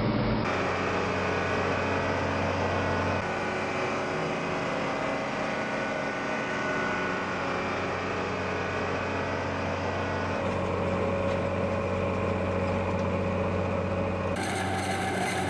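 A harvester engine drones steadily and loudly close by.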